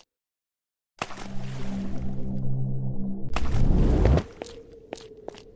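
A magical orb hums and crackles.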